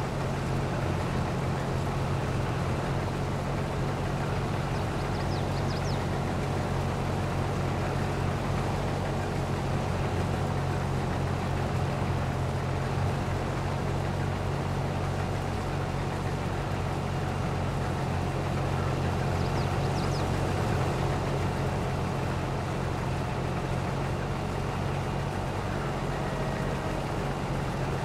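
A combine harvester engine drones steadily.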